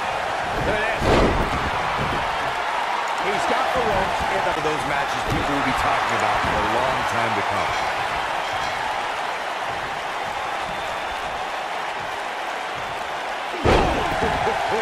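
A body slams heavily onto a wrestling mat.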